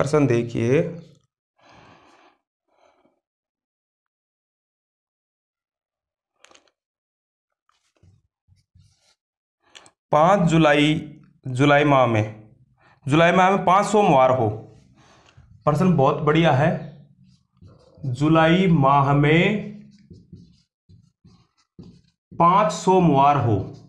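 A man speaks clearly and at a measured pace, close by.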